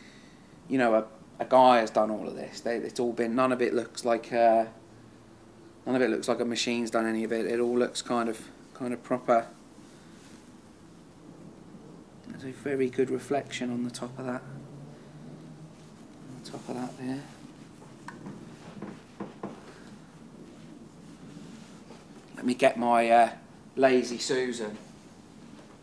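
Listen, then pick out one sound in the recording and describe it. A man talks calmly and clearly nearby.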